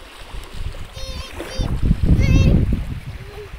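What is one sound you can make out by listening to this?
A toddler squeals in a high voice close by.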